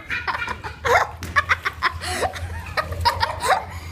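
Water splashes as a girl climbs out of a pool.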